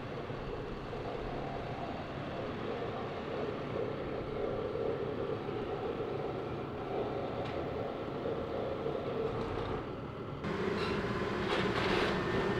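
A diesel excavator engine drones.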